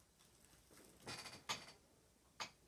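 A leather chair creaks.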